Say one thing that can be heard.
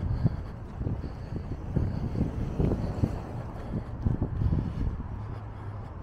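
A car drives up the road and passes close by.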